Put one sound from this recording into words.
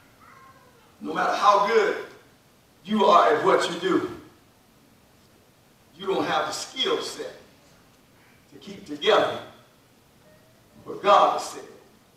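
A man preaches forcefully through a microphone in short bursts, in a room with some echo.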